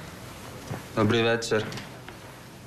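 A young man speaks a short greeting close by.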